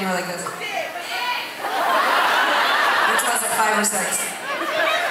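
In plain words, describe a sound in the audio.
A young woman sings into a microphone over loudspeakers.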